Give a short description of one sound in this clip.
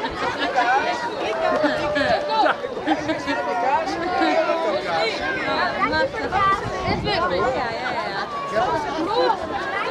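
A crowd of children and adults chatter and call out all around, outdoors.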